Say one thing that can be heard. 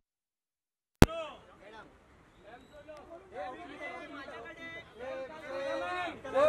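Men call out loudly and with animation close by.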